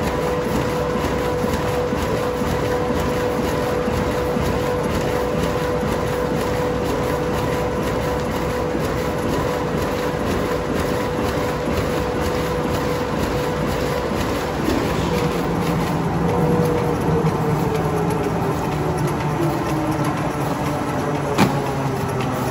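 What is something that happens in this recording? A large machine runs with a loud steady hum and clatter.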